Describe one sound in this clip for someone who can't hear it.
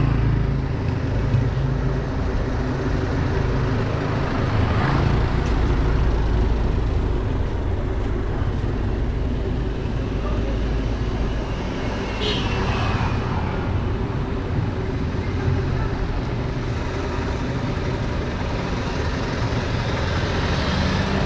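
Wind rumbles outdoors, strong and steady.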